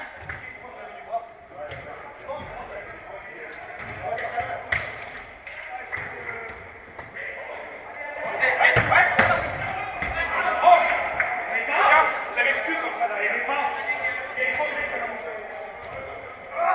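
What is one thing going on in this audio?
Young men shout and call to each other across an echoing indoor pitch.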